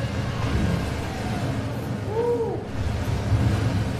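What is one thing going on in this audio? A sports car engine roars loudly at speed.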